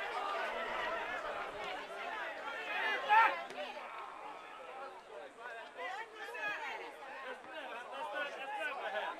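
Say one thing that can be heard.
Men shout and call out across an open football pitch.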